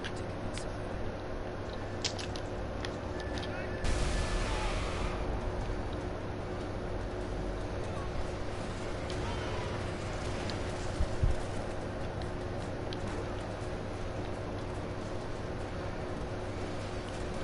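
Footsteps thud quickly on pavement.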